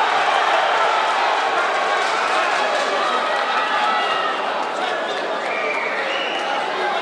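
A large indoor crowd cheers and shouts loudly.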